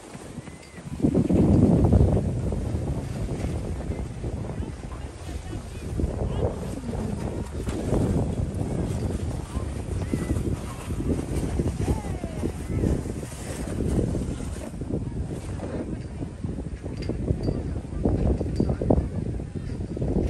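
Wind blows hard outdoors across the microphone.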